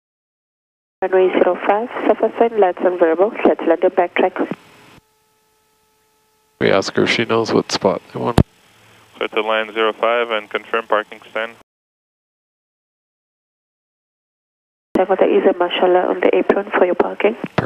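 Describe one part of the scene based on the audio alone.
A man speaks calmly through a headset radio, in short bursts.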